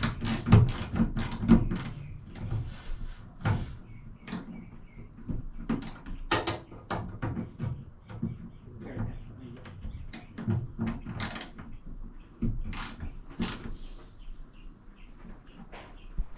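A screwdriver scrapes and clicks against metal.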